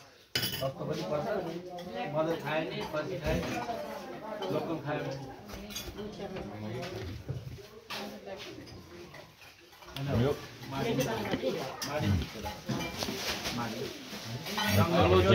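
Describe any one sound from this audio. Several men and women talk over one another nearby.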